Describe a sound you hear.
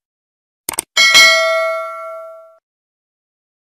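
A small bell chimes and rings out, fading away.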